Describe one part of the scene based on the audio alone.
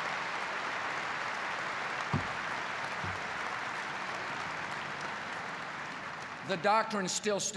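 A large crowd applauds in a big hall.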